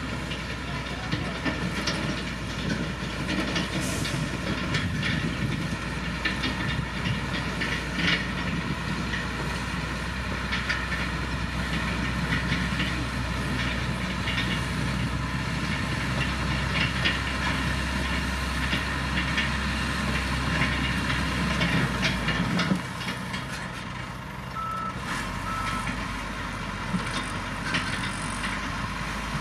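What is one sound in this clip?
Soil and gravel scrape and crunch under a grader blade.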